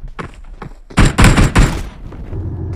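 A cannon fires with loud booms.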